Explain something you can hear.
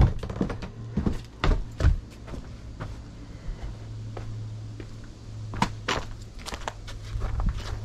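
Footsteps crunch on debris outdoors.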